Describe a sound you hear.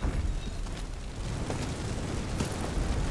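Magical flames roar and whoosh.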